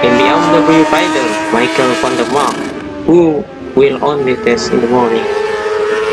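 A motorcycle engine shifts through its gears with sharp bursts.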